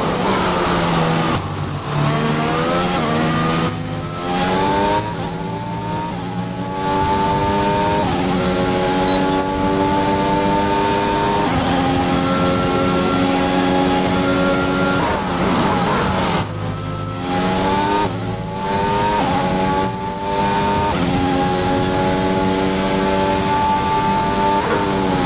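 A racing car engine screams at high revs, climbing in pitch through each gear and dropping sharply at every shift.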